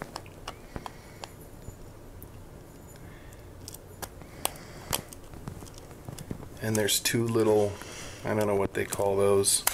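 A screwdriver scrapes and clicks against a small screw.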